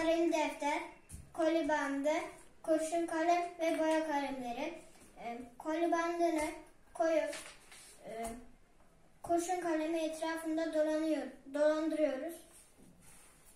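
A young boy talks calmly close by.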